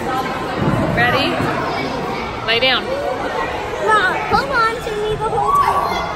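A young child laughs and squeals nearby.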